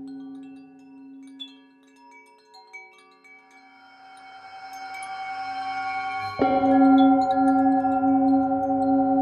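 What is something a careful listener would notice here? A singing bowl hums and swells as a mallet circles its rim.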